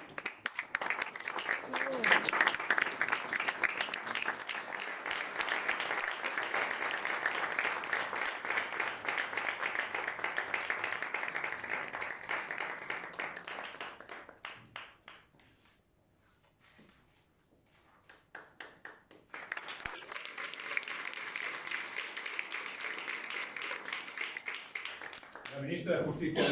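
A small crowd claps in applause in a room.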